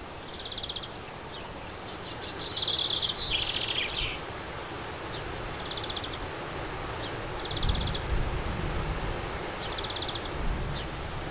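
Small birds chirp and trill in short bursts outdoors.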